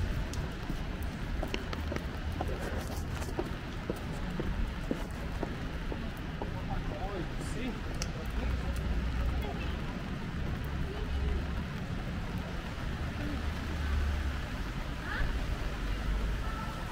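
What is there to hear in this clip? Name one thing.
Footsteps tap on wet pavement.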